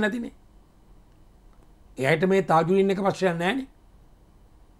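A middle-aged man speaks forcefully into a microphone, close by.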